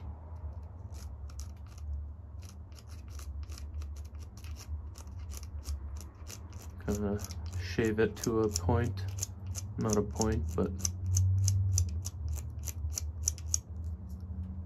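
A knife scrapes and shaves a small stick in short, quick strokes.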